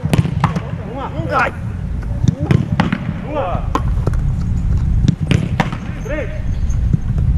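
Young men call out to each other across an open field.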